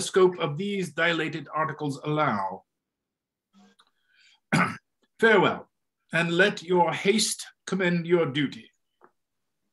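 An elderly man reads aloud over an online call.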